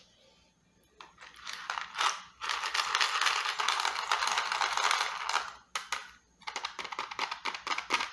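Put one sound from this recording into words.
A young woman scratches her fingernails over a plastic case in a loud rustling hiss.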